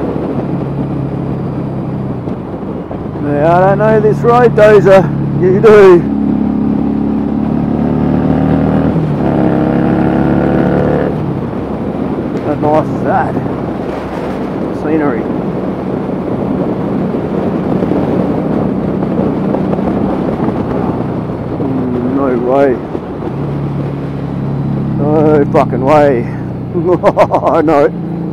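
A motorcycle engine hums while cruising along a road.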